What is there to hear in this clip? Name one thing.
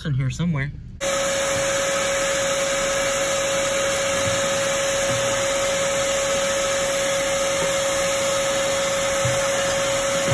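A vacuum cleaner hose sucks up debris with a steady loud whine.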